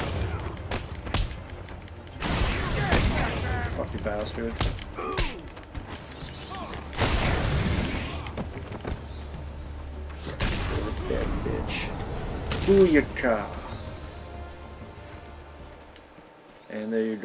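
Heavy punches and thuds land during a brawl.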